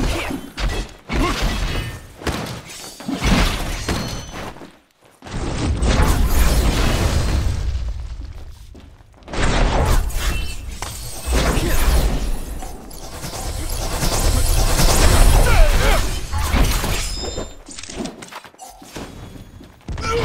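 Blades clash and slash in quick bursts of combat.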